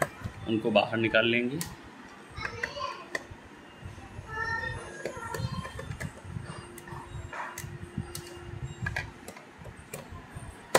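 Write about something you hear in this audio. A screwdriver scrapes and clicks against a small screw.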